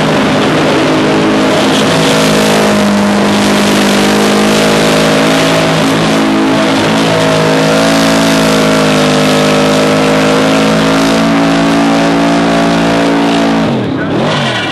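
A car engine roars loudly and steadily at high revs.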